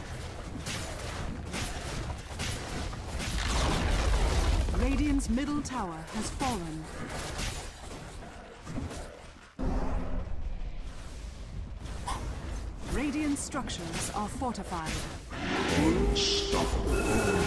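Game spell effects and weapon hits clash in a busy battle.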